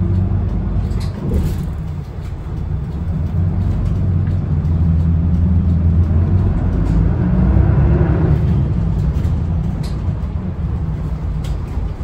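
A bus engine rumbles steadily from inside the vehicle.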